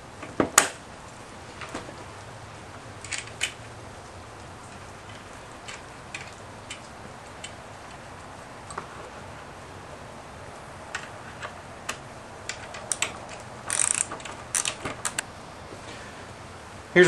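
Metal parts click and clink as bolts are handled and tightened.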